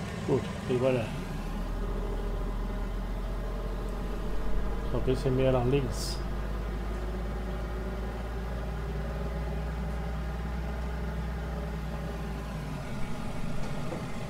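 A truck engine rumbles steadily as the truck drives along.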